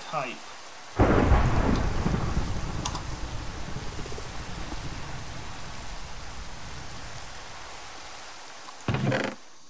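Rain patters steadily, then stops.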